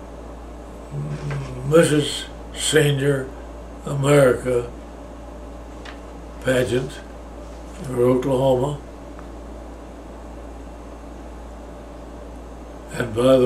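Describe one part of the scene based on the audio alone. An elderly man speaks slowly and calmly, close by, in short phrases with pauses.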